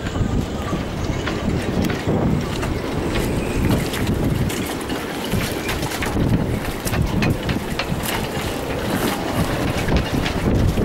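Rigging clinks against masts in the wind.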